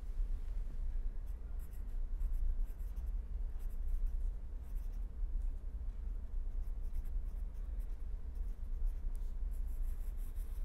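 A marker pen scratches softly across paper.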